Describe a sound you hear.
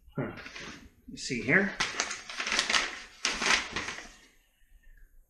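Paper crinkles as it is unfolded.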